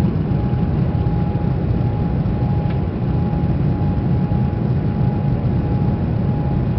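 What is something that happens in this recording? Jet engines roar steadily from inside an airliner cabin in flight.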